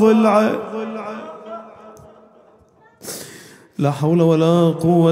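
A man chants in a long, drawn-out voice through a microphone in an echoing hall.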